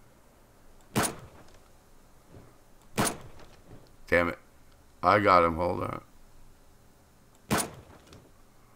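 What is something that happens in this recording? A rifle fires single loud shots, with a short echo after each.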